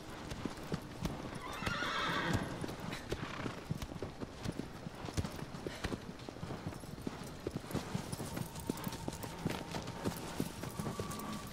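Horse hooves thud rhythmically on grass at a gallop.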